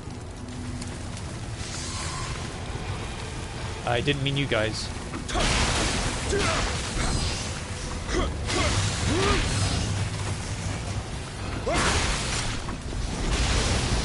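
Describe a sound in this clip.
Water splashes under running feet.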